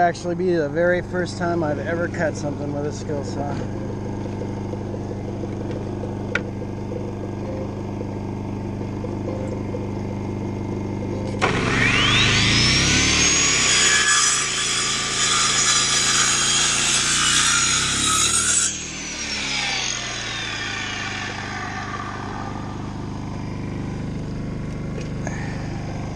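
A generator hums steadily nearby.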